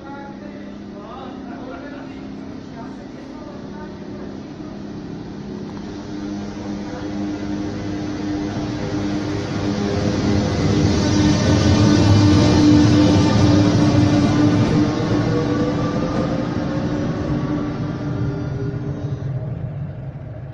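An electric locomotive's motors hum and whine as it rolls through close by.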